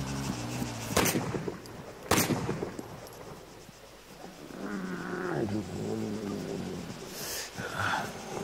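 A pistol fires single sharp shots.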